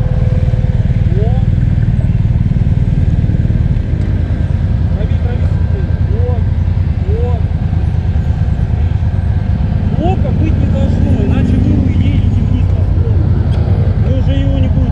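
Other motorcycles rev up and down nearby.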